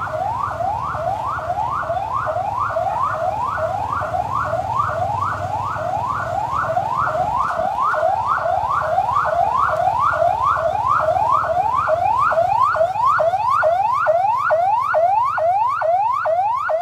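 A police car siren yelps in rapid rising sweeps.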